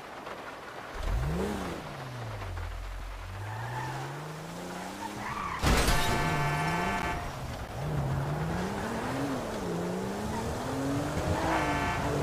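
A car engine starts and revs up and down.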